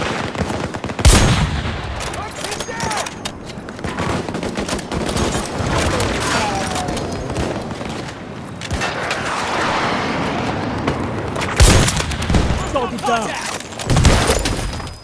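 Rifle shots crack loudly, echoing off rock.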